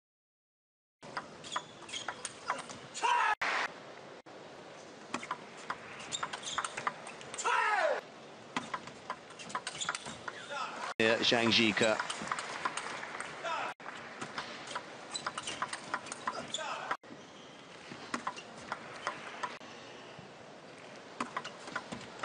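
A table tennis ball bounces on the table.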